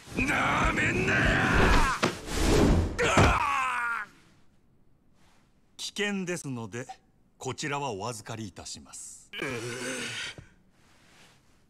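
A man speaks firmly and coldly.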